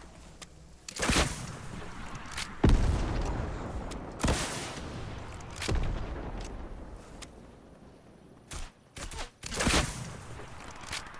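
A launcher fires with loud whooshing blasts.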